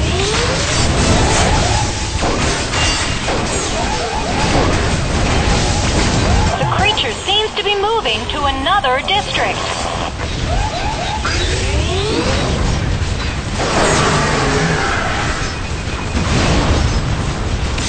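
Explosions boom and crackle rapidly in a video game.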